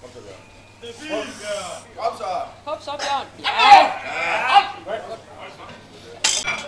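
A group of men shout to urge on a weightlifter.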